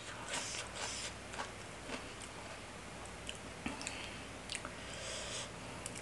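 Food squelches as fingers pick through a salad.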